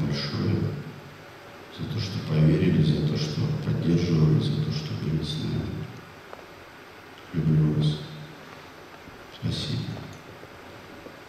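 A young man speaks slowly into a microphone in a large echoing hall.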